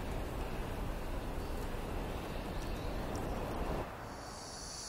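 A fire roars and crackles nearby.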